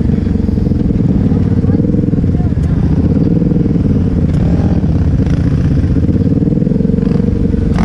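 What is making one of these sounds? An off-road vehicle's engine drones loudly and steadily up close.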